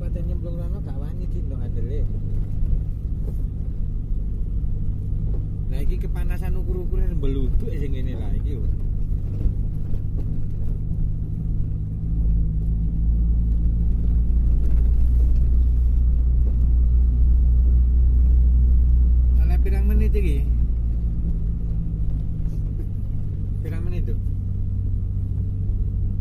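A vehicle engine rumbles steadily from inside the cab, growing louder for a while.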